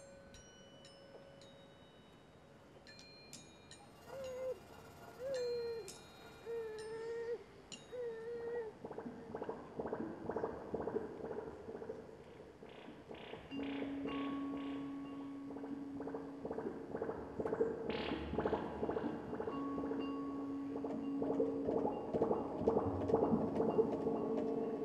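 Electronic synthesizer tones and beats play, growing busier and louder.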